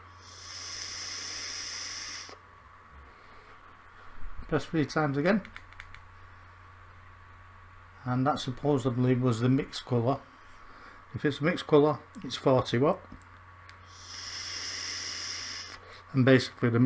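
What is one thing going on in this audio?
A man draws on an electronic cigarette with a soft hiss.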